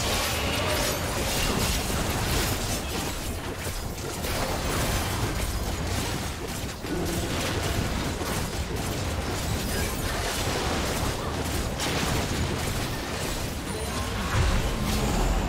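Video game spells and blows crackle and clash in a busy battle with a huge monster.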